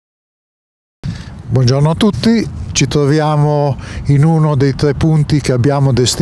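A man speaks calmly into a handheld microphone outdoors.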